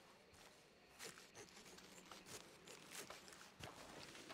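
A man rustles through grass and cloth close by.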